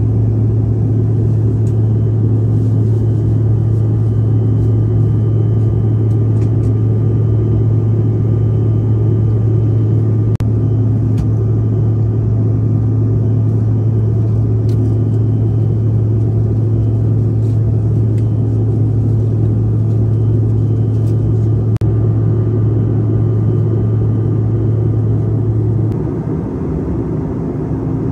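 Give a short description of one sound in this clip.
Jet engines drone steadily and loudly in an airliner cabin.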